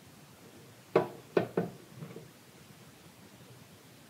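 Flour pours into a bread machine pan.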